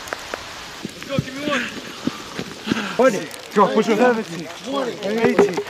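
A young man grunts and shouts with effort nearby.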